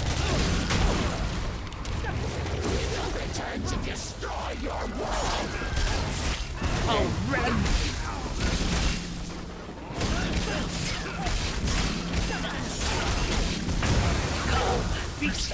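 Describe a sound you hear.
Lightning spells crackle and zap in bursts.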